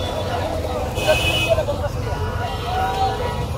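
A knife scrapes scales off a fish in quick, rasping strokes.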